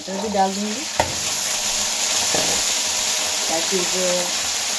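Sizzling grows louder as a handful of peas drops into hot oil.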